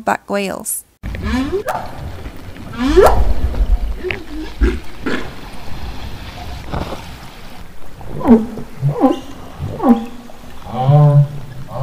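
Humpback whales moan and groan in long, sliding calls underwater.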